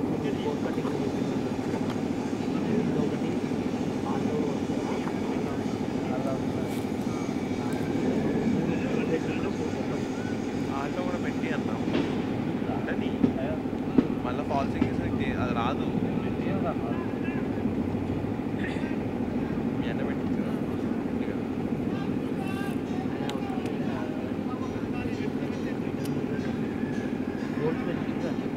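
Men talk and call out to each other across an open field, heard from a distance.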